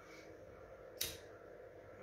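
A lighter clicks and flicks on.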